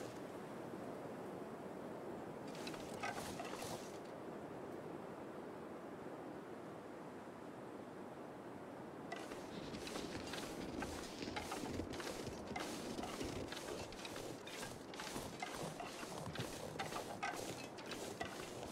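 Wind gusts steadily outdoors.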